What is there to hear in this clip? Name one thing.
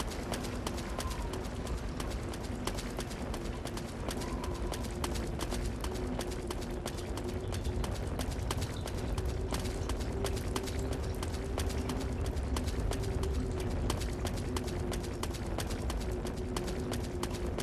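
Footsteps crunch quickly over dry leaves and dirt.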